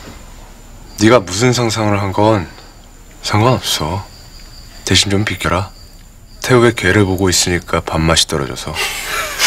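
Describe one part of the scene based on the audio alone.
A young man speaks calmly and coldly, close by.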